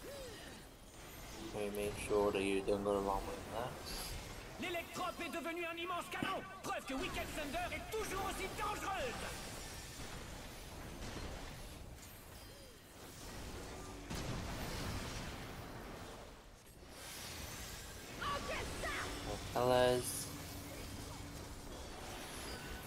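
Magic spells burst and shimmer with bright chimes and whooshes.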